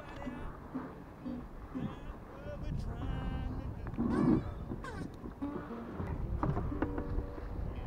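Water laps against the hull of a small boat.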